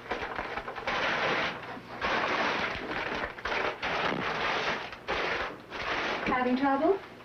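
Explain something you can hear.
Cloth rustles as linen is handled and folded.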